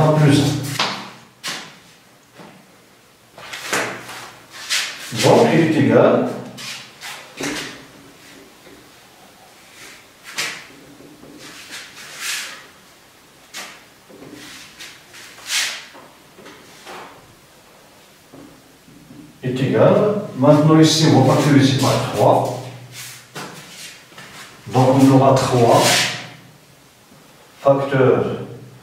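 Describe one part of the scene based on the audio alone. A middle-aged man speaks calmly and explains nearby.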